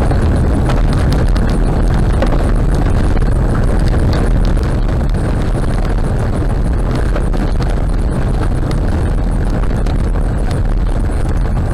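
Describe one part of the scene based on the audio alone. A car's engine hums steadily as it drives on a road.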